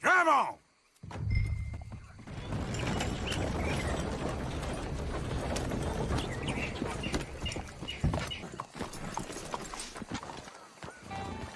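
A horse's hooves clop on wooden planks.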